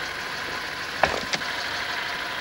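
A car door clicks open.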